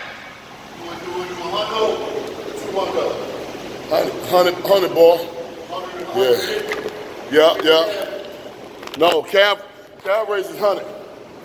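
A middle-aged man talks close up, breathless and animated.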